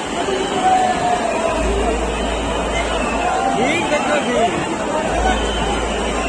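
Fast river water rushes and churns.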